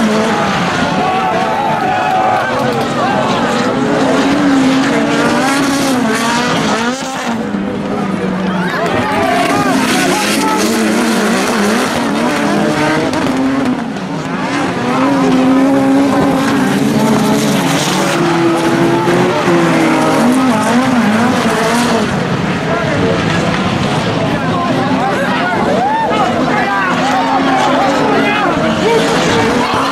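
Racing car engines roar and rev as cars speed around a dirt track.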